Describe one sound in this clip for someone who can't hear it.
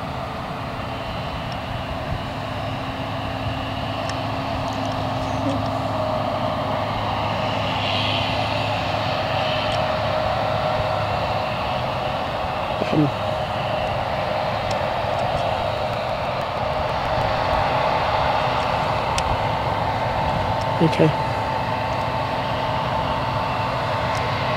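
A combine harvester engine drones steadily at a distance outdoors.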